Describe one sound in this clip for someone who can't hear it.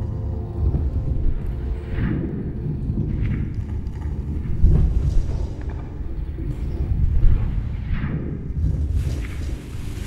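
Thin fabric rustles softly.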